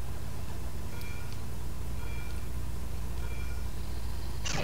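Countdown beeps sound three times, evenly spaced.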